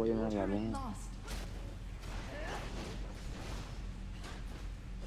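Game spell effects whoosh and burst.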